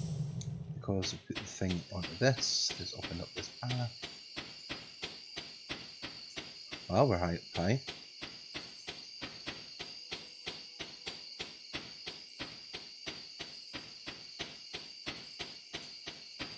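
Quick, steady footsteps tap as a game character walks.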